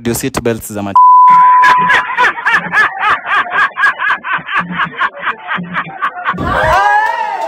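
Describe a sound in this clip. A man laughs loudly and wildly outdoors.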